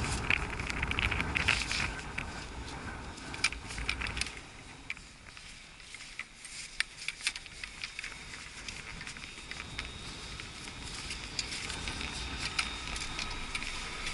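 Wind gusts against the microphone outdoors.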